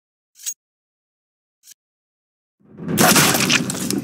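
A pistol fires a single shot.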